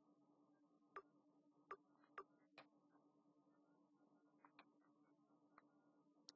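Soft game menu clicks tick now and then.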